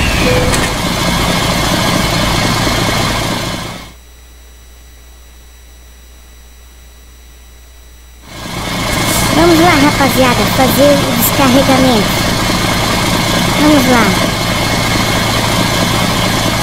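A truck engine idles with a low, steady rumble.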